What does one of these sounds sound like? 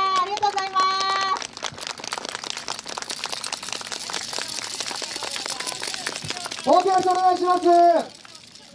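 A group of young dancers shout a long call together.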